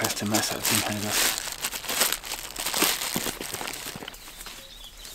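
Plastic wrapping rustles as a hand rummages through a bag.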